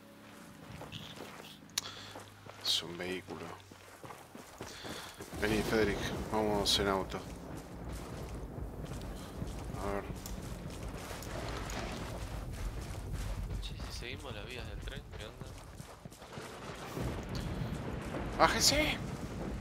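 Footsteps run over gravel and grass.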